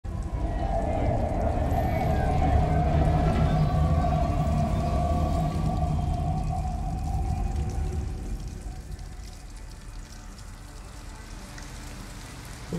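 Rain patters steadily on wet ground.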